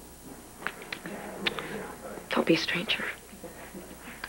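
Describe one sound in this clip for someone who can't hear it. A woman speaks quietly and calmly close by.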